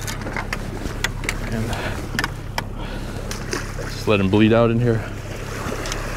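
Water splashes as a fish is lifted in a landing net.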